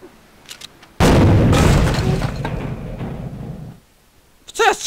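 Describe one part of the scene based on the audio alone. A cannon fires with a loud boom that rumbles away.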